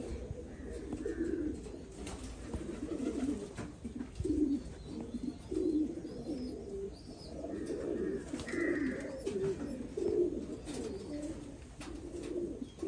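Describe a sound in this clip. Pigeons coo in low, throaty, repeated bursts.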